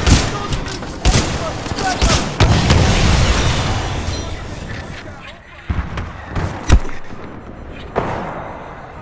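Gunshots and explosions boom with loud echoing blasts.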